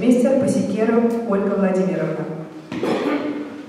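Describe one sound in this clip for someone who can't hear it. A young woman speaks calmly into a microphone in an echoing hall.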